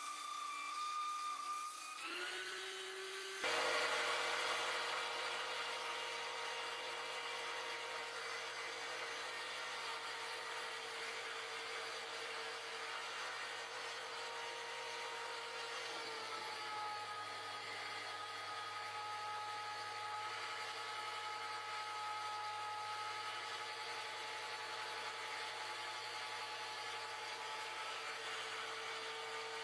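A lathe motor whirs steadily.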